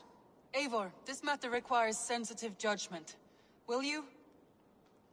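A woman speaks calmly and seriously.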